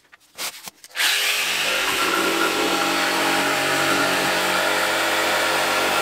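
A jigsaw cuts through a board with a steady buzzing whine.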